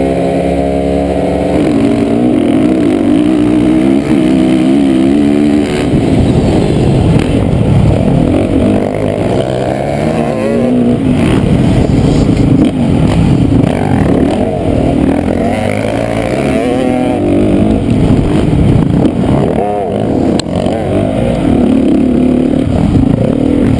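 A dirt bike engine roars loudly up close, revving up and down.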